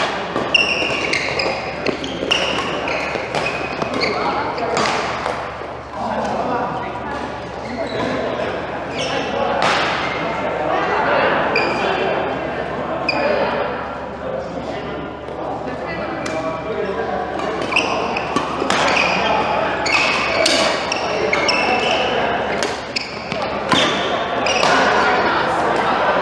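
Sports shoes squeak on a hard court floor.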